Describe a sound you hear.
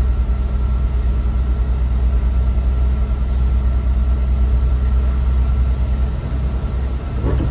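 A bus engine rumbles low and steady from inside the cab.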